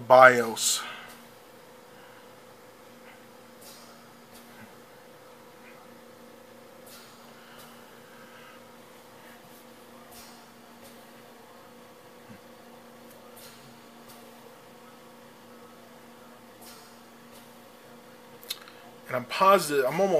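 A computer hums steadily and quietly.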